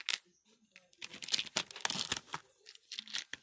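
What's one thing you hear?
A plastic case and its cover rustle and scrape under a hand.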